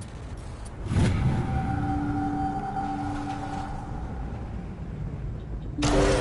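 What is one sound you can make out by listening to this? A heavy door slides open with a mechanical rumble.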